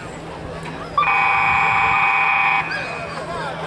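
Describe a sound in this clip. A referee's whistle blows a long blast.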